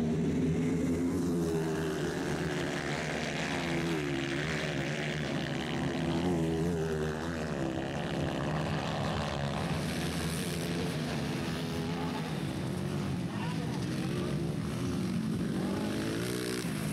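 Dirt bike engines whine and rev loudly, rising and falling in pitch.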